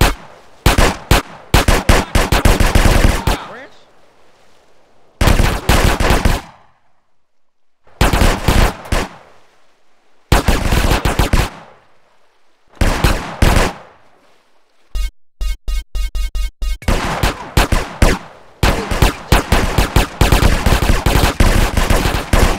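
Gunshots fire in rapid bursts, close by.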